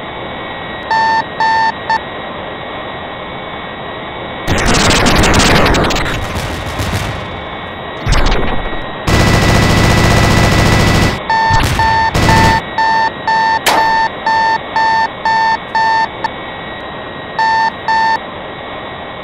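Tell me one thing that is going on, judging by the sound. A warning alarm beeps in short repeated tones.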